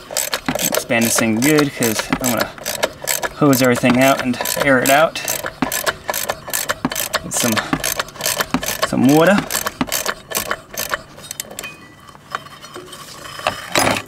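A ratchet wrench clicks rapidly as it turns.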